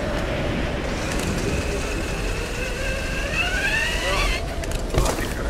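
A pulley whirs and rises in pitch as it slides down a taut rope.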